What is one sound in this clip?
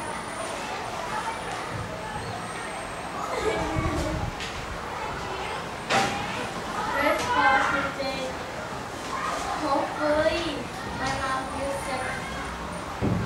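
A young girl reads aloud with animation.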